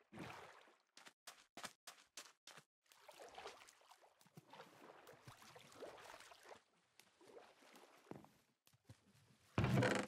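Water sloshes and splashes as someone wades and swims.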